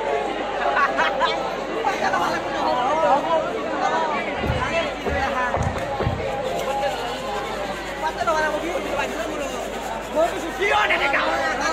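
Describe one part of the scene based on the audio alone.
A crowd of men, women and children chatter nearby outdoors.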